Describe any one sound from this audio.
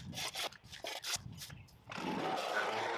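A shovel scrapes on dirt.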